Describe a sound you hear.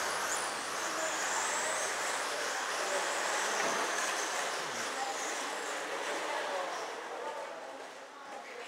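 Tyres of small cars hiss on a smooth track.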